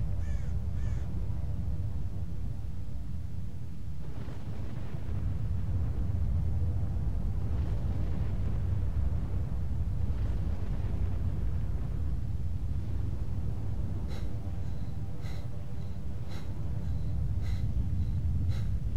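A deep, steady rumble of a storm fills the air.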